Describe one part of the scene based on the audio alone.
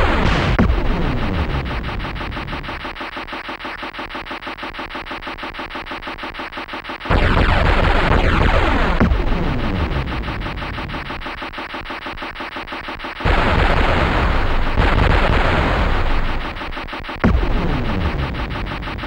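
Explosions boom in bursts of rumbling noise.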